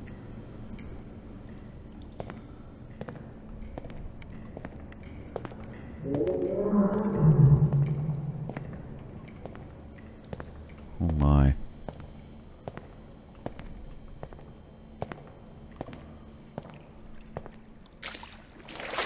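Footsteps tap steadily on a hard tiled floor in an echoing space.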